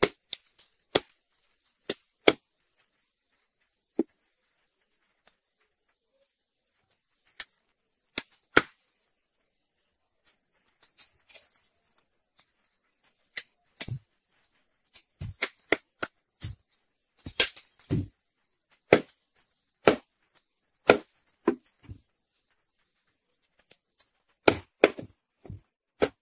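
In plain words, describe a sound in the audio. A heavy blade chops through fish with sharp, dull thuds on a wooden block.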